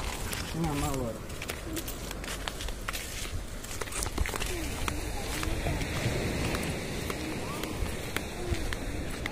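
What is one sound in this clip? A young child talks in short bursts close by.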